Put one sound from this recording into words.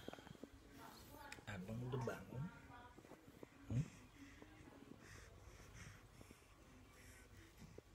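A baby coos softly.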